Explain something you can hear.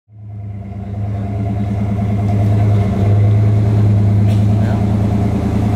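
A car engine idles with a deep, steady, throbbing rumble close by.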